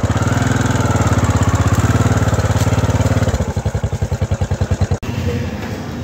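A motorcycle engine runs with a low, steady putter.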